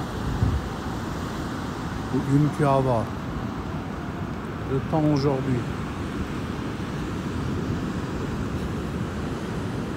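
Waves crash and roar onto the shore.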